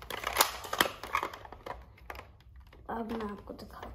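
A plastic toy gun rattles and clicks in a boy's hands.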